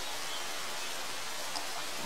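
Water gurgles into a bamboo tube.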